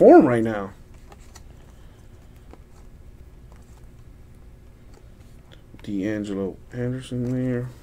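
Trading cards slide and flick against each other in someone's hands.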